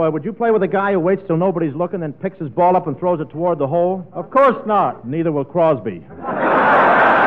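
A man speaks with animation into a microphone, heard through an old, thin radio recording.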